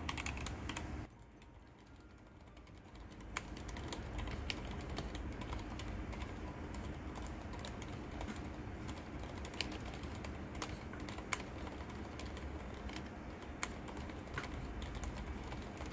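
Keys on a quieter keyboard clatter softly with muted thocks.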